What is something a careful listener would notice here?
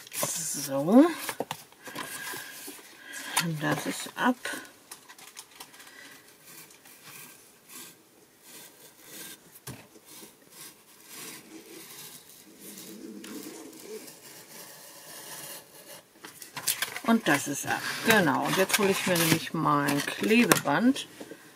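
Cardboard sheets slide and rustle.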